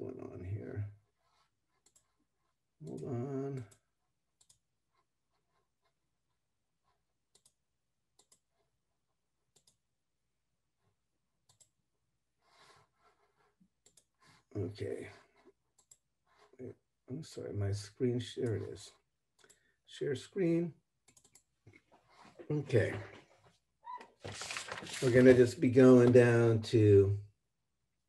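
A middle-aged man speaks calmly in short bursts through an online call microphone.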